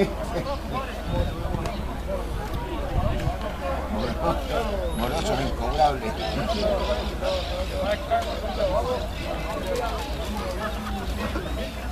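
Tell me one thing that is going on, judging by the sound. Spectators talk and call out at the edge of a field.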